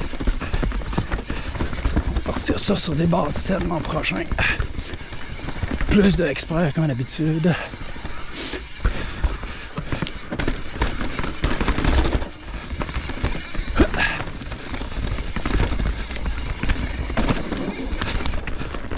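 Wind rumbles hard past a fast-moving rider.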